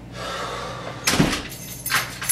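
A door shuts with a thud.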